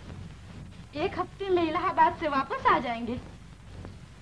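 A young woman laughs and speaks with animation.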